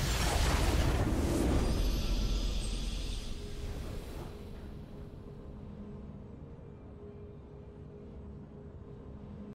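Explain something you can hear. A bright game victory fanfare swells and slowly fades.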